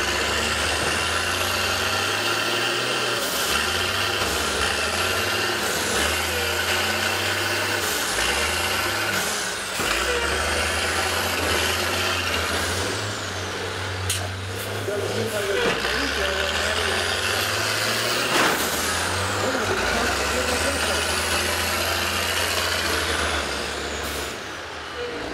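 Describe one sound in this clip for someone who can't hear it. Bus engines rumble and rev.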